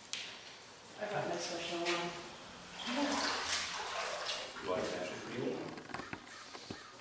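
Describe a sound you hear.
A middle-aged man talks calmly nearby.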